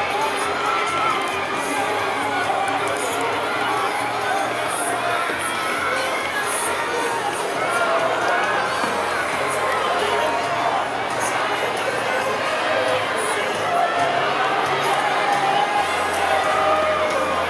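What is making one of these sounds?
A large crowd of fans sings and chants loudly in a big open stadium.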